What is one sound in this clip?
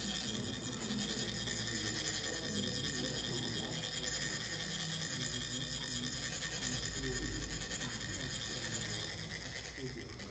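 A metal funnel rasps steadily as sand trickles out.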